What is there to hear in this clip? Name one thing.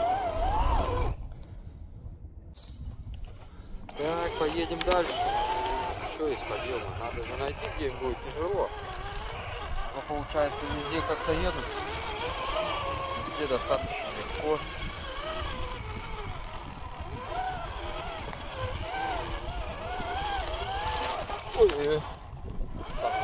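A small electric motor whines, rising and falling as a toy truck drives.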